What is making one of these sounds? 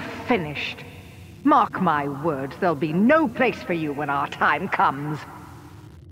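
A woman speaks coldly and menacingly, close up.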